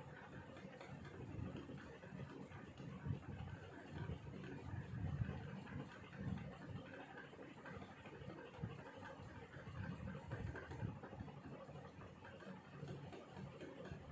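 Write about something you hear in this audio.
A brush dabs softly on paper.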